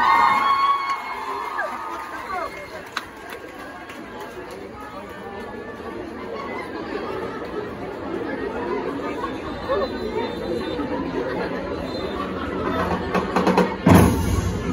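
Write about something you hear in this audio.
A large crowd of voices murmurs and calls out outdoors.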